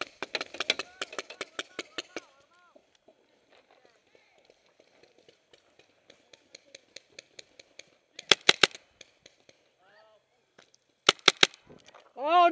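A paintball marker fires in rapid bursts of sharp pops.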